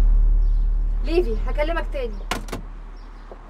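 A woman speaks urgently into a telephone.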